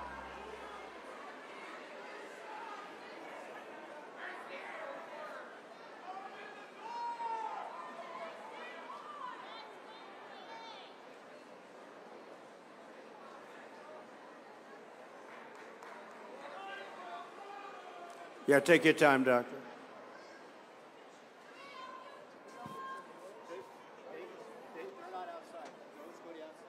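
A crowd murmurs and chatters in a large hall.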